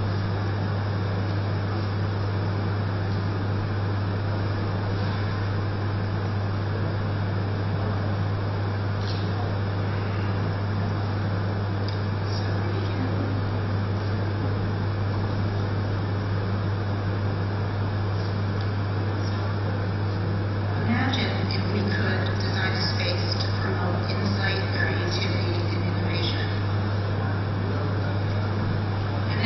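A woman speaks calmly into a microphone over loudspeakers in a large hall.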